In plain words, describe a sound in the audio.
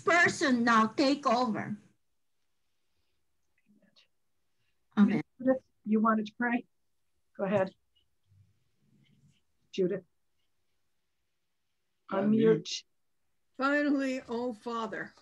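A woman speaks in short phrases over an online call, with pauses between them.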